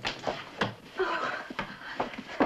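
A man speaks in surprise.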